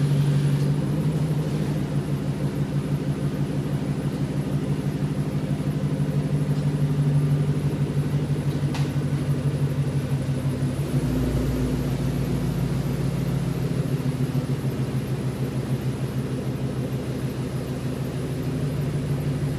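A car engine idles with a deep, steady rumble.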